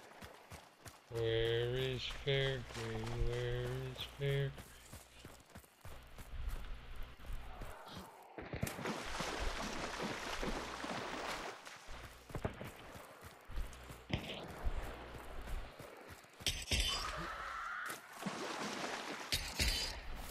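Footsteps splash and slosh through shallow water.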